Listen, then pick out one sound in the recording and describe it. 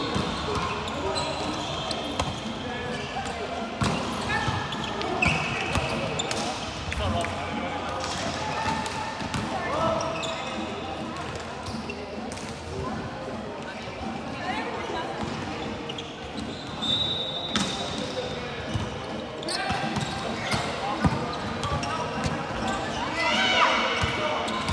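Young men and women call out to each other in a large echoing hall.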